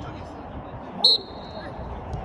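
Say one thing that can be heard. A ball thumps off a foot with a sharp kick.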